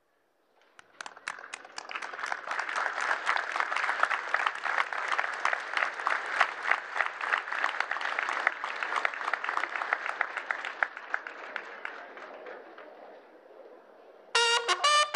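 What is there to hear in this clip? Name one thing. A large crowd claps and applauds steadily, then fades.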